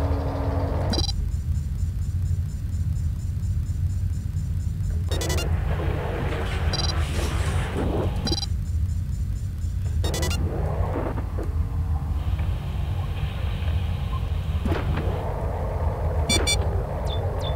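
Short electronic interface beeps sound now and then.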